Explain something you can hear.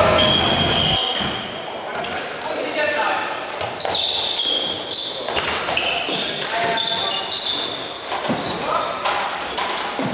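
Floorball sticks clack against a plastic ball in a large echoing hall.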